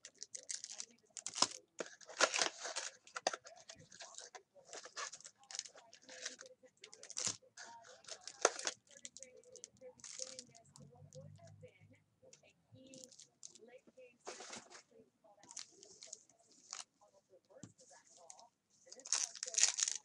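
Hands handle and shuffle cardboard boxes of trading card packs.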